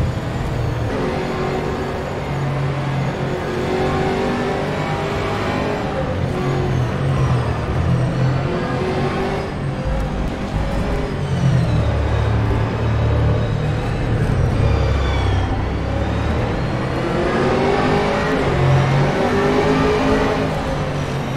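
A race car engine roars loudly, rising and falling in pitch as it revs and shifts gears.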